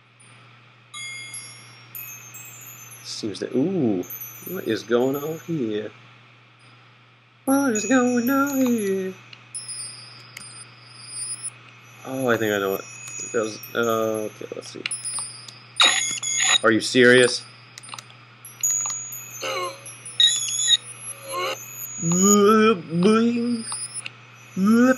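Gentle game music plays with light chiming notes.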